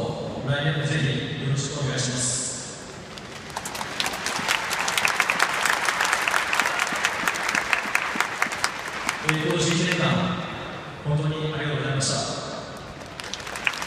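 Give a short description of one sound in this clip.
A man speaks slowly through a microphone over stadium loudspeakers.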